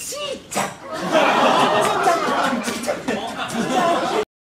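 A crowd cheers and laughs loudly.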